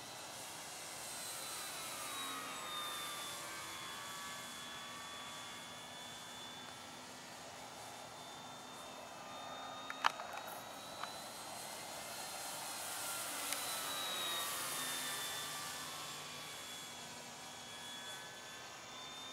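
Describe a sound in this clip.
A radio-controlled model plane's motor whines overhead, rising and falling in pitch as it passes.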